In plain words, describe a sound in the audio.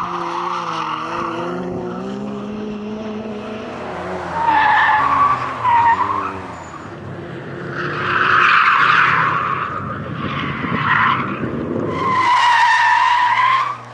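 Racing car engines roar and rev hard as cars speed past.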